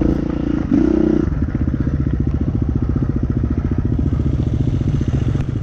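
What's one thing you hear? A motorbike engine chugs close by at low revs.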